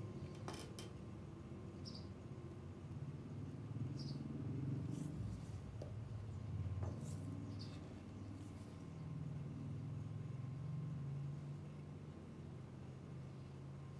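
A small metal tool scrapes and smooths soft filler on a plastic part.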